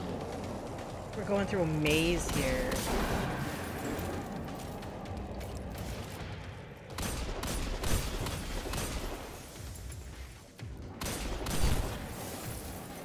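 Gunfire blasts in rapid bursts.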